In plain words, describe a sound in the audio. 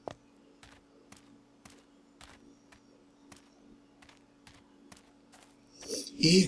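Footsteps tread steadily on cobblestones.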